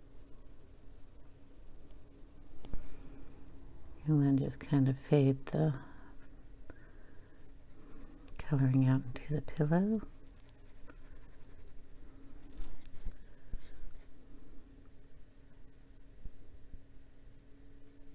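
A brush pen softly strokes across paper.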